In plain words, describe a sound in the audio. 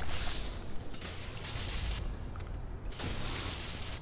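Heavy metal clangs against metal.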